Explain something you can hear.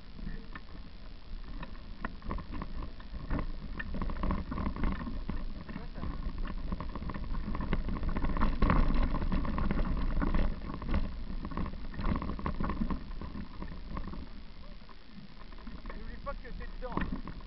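A bicycle frame rattles and clatters over bumps.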